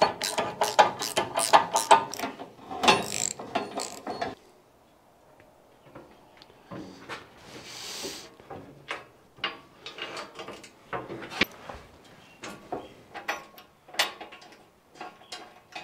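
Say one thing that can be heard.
Bolts are tapped and tightened with metal clicks.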